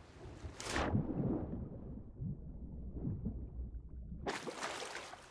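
Water rumbles, dull and muffled, from under the surface.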